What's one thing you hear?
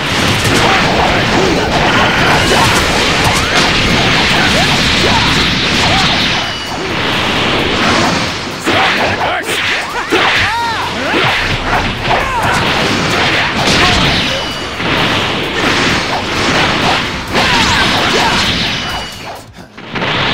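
Energy blasts whoosh and explode in a fast fight.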